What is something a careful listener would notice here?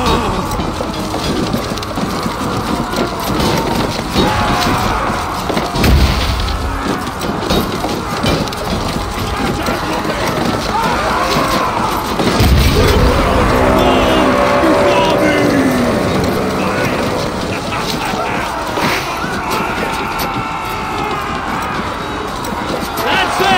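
Weapons clash and clang in a battle.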